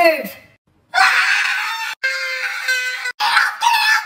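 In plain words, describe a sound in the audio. A young man screams close by.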